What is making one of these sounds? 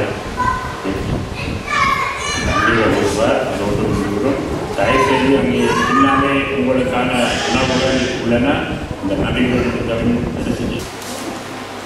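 An audience laughs and chatters.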